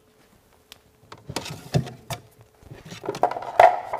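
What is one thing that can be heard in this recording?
A cabinet door swings shut with a thud.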